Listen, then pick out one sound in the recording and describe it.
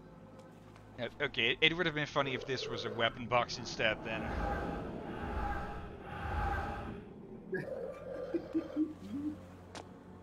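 A young man talks with animation into a close headset microphone.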